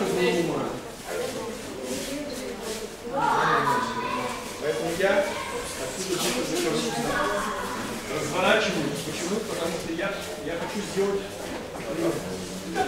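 Several young men and women talk and call out nearby in an echoing hall.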